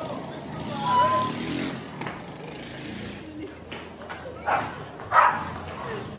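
An elderly woman laughs cheerfully.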